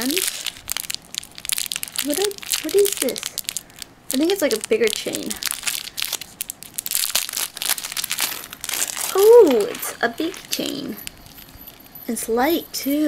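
Small metal rings clink and jingle as they are handled.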